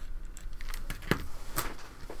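A pencil is set down on a table with a light tap.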